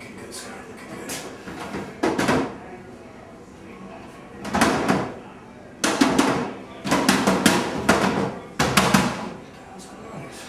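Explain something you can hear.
A paper towel dispenser rattles as paper is pulled and torn out.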